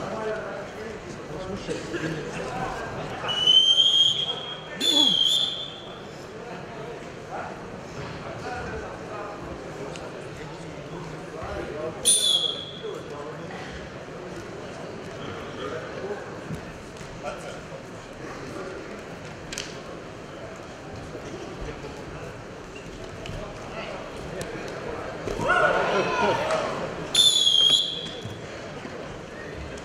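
A large crowd cheers and murmurs in an echoing hall.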